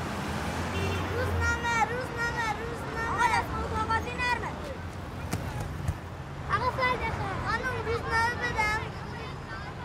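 A young boy calls out loudly to drivers.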